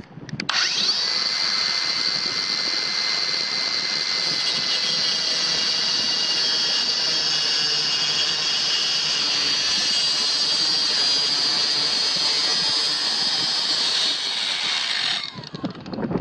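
A small circular saw whines loudly as it cuts through wood.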